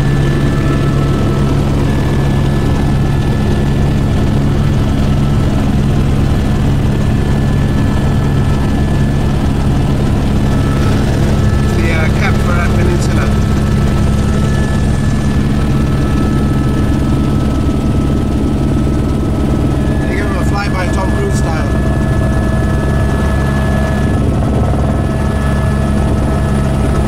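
A helicopter engine and rotor drone loudly and steadily from inside the cabin.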